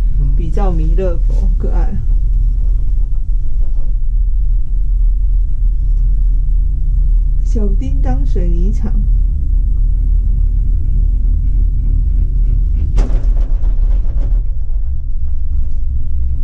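A gondola cabin hums and rumbles steadily as it moves.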